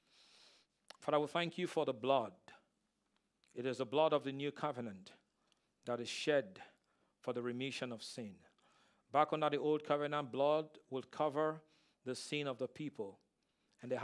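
A man speaks slowly and with emphasis through a headset microphone, with long pauses.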